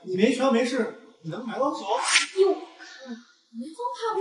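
A young man speaks with surprise.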